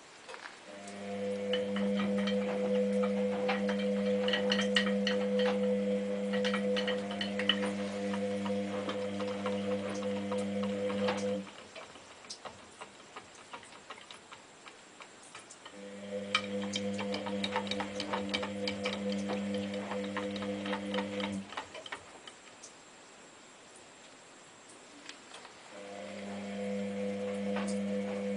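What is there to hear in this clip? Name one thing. Laundry tumbles and clatters inside a washing machine drum.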